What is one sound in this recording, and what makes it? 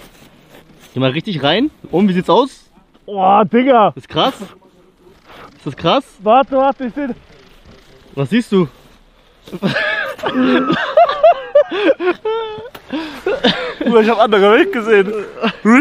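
A young man talks and laughs with animation close to a microphone.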